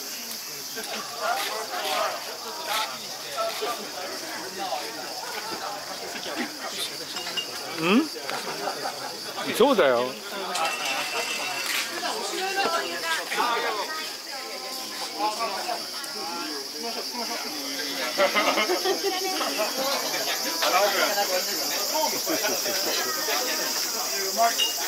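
A crowd of men and women chatter and talk over one another nearby.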